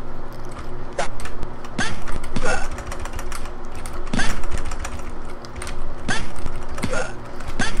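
Punches and kicks land with sharp thuds in a game.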